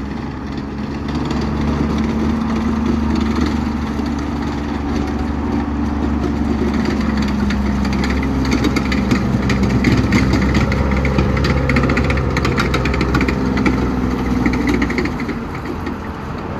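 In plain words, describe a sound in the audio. A tracked armoured vehicle's engine rumbles close by as it drives past.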